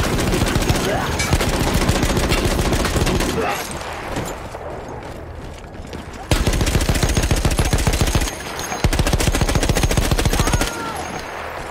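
A heavy machine gun fires rapid, thudding bursts.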